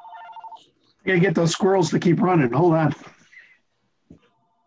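An elderly woman speaks over an online call.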